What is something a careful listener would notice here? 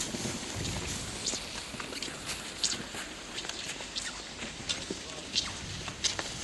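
Ski poles click and crunch into the snow.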